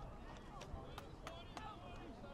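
Players' helmets and pads knock together in a tackle.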